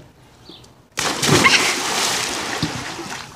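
A body splashes loudly into water.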